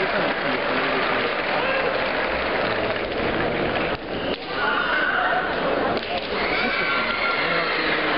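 Fencers shout loudly as they strike.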